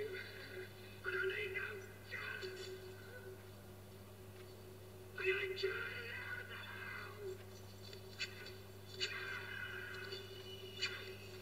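A man speaks tensely through a television speaker.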